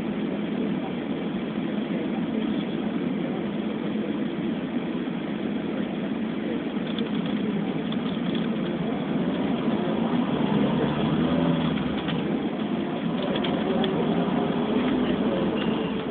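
Traffic rumbles steadily past on a busy road.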